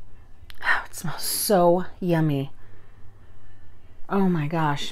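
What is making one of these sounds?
A middle-aged woman makes short falling murmurs close by.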